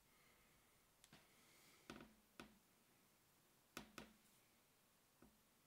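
A small plastic figure clicks and taps as it is handled close by.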